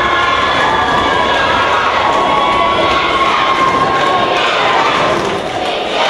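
A group of young girls chatter and cheer together in a large echoing hall.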